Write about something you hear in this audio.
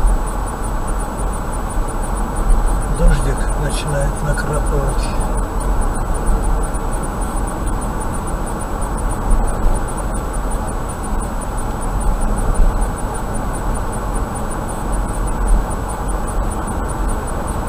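A car drives steadily along a road, with a low engine hum and tyre roar heard from inside.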